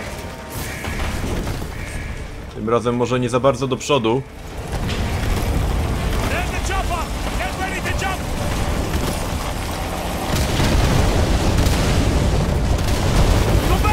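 Explosions boom with a deep rumble.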